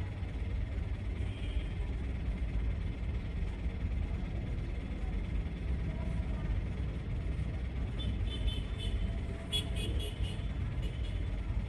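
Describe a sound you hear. A vehicle engine idles with a steady low rumble close by.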